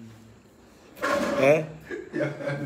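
A young man laughs loudly close to a phone microphone.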